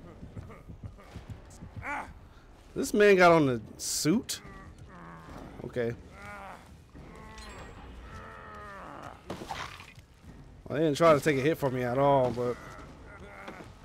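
A young man talks with animation into a close headset microphone.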